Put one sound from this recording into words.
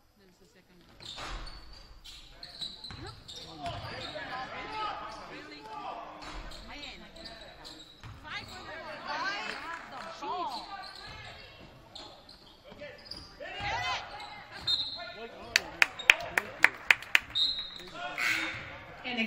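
A crowd cheers and calls out in a large echoing gym.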